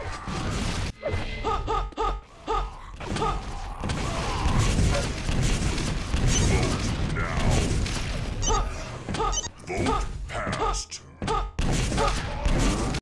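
Gunshots and explosions from a video game fire rapidly.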